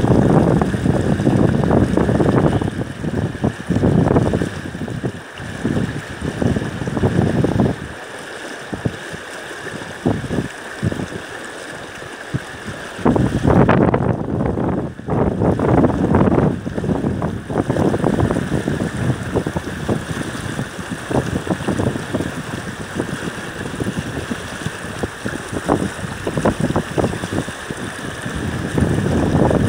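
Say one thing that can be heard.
Fast river water rushes and churns close by.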